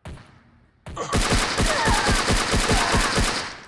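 A submachine gun fires a rapid burst of loud shots.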